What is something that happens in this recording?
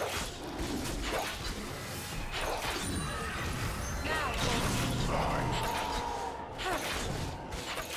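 Magical spell effects whoosh and zap rapidly in a video game battle.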